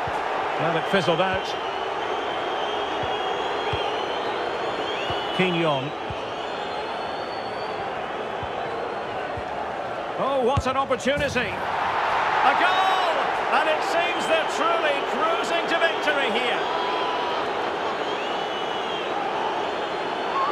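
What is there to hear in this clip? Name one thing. A large stadium crowd roars steadily, swelling into a loud cheer.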